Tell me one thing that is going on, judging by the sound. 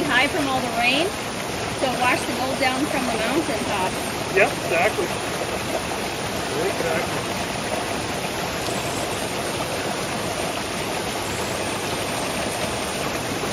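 A shallow stream rushes and babbles over rocks.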